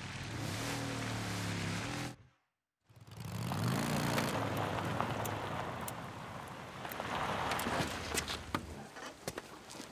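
A motorcycle engine rumbles as it rides along.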